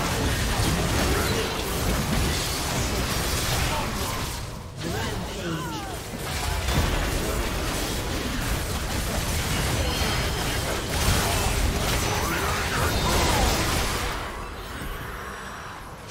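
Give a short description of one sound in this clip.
Magic spells whoosh and crackle during a hectic fight in a video game.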